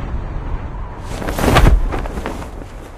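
A parachute snaps open with a whoosh.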